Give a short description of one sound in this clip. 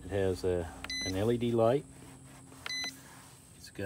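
An electronic device beeps briefly when its button is pressed.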